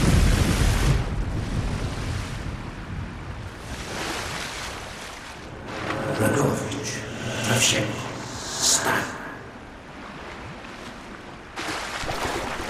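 Water gurgles in a muffled way underwater.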